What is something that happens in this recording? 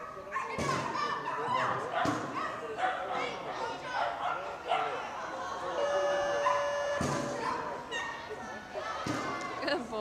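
A woman calls out commands to a dog from a distance.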